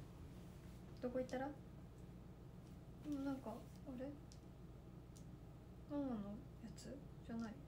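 A young woman speaks softly and calmly nearby.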